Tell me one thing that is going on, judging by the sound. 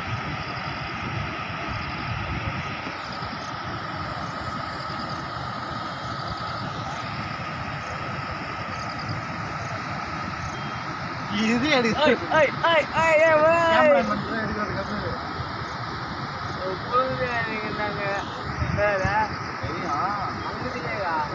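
Floodwater roars and rushes over a dam spillway.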